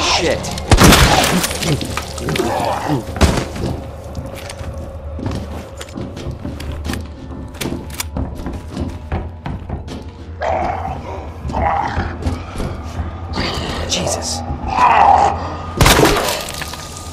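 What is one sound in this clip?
Gunshots bang loudly.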